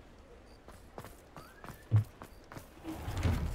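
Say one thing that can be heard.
Footsteps crunch on snowy cobblestones.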